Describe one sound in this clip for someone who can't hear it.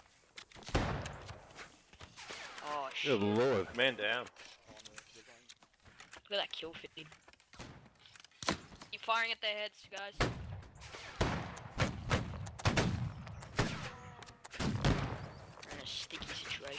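Musket shots crack and boom nearby, one after another.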